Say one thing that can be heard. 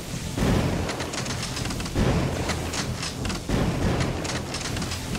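Heavy gunshots boom at a steady pace, each followed by a rumbling echo.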